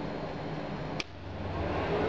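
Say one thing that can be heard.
An embroidery machine switches on with a click.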